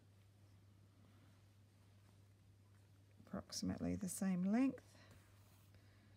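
Thread softly rustles as it is pulled through cloth.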